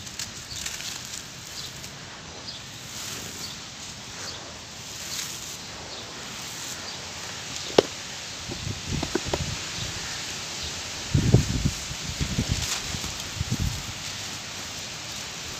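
Dry sand pours and trickles from hands, hissing softly.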